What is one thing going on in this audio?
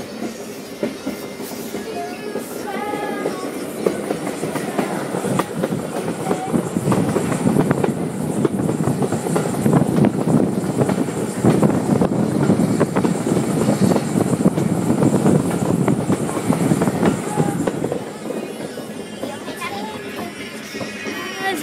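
A steam train rumbles and clatters along the tracks close by.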